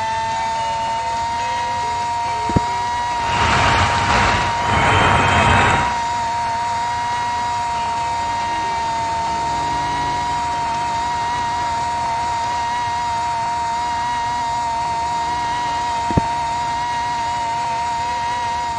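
A racing car engine whines at a steady high pitch.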